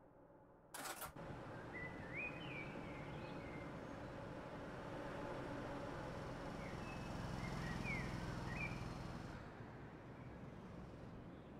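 A parked train hums steadily close by.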